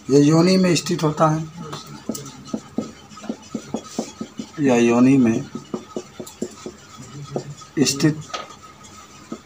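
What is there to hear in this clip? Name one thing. A man speaks calmly and slowly, close by.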